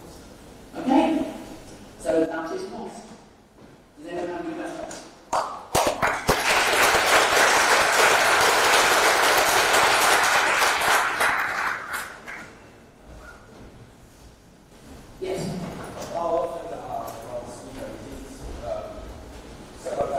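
A man speaks through a microphone in an echoing hall.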